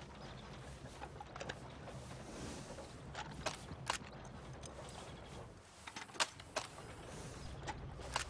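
Metal parts of a rifle click and clack as the rifle is handled.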